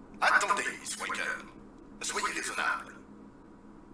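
A man speaks urgently through a small loudspeaker.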